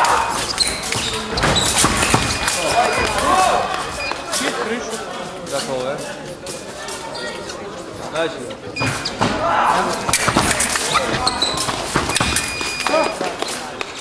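Fencing blades clash and click rapidly.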